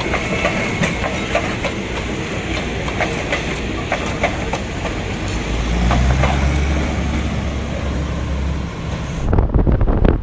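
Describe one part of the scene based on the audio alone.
A train rumbles and clatters past on its rails.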